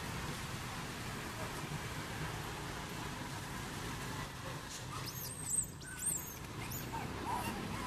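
Monkeys scramble and rustle through the branches of trees.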